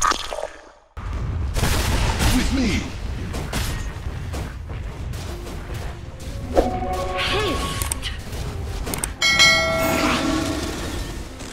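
Fantasy battle sound effects clash and burst as game characters fight.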